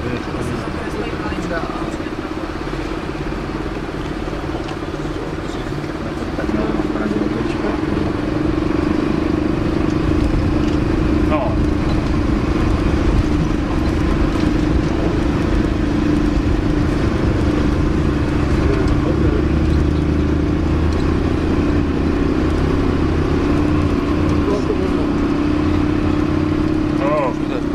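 A bus engine drones steadily as the bus drives along.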